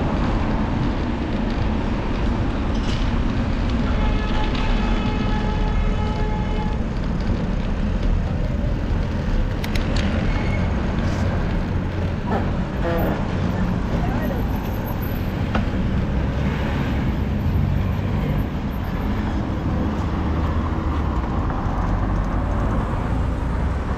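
Wind rumbles and buffets loudly against a moving motorcycle.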